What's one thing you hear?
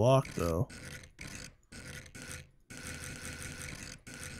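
A wooden block knocks into place.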